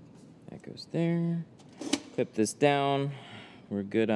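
A button on a machine clicks.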